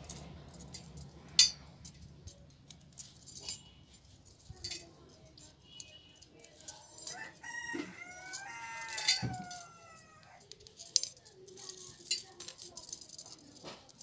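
Metal spokes clink and rattle against a wheel hub.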